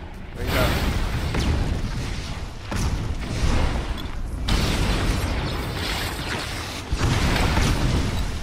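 Video game spell effects whoosh and burst.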